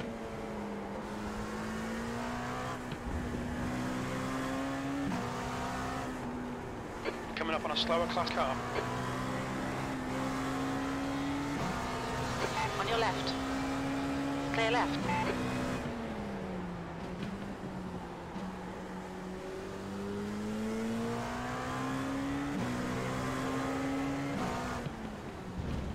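A racing car engine drones steadily, rising in pitch and dropping sharply with each gear change.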